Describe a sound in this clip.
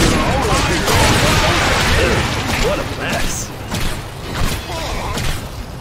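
Blades strike enemies with sharp hits.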